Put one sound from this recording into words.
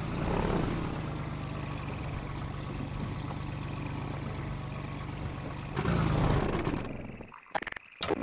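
A boat engine drones steadily, then stops.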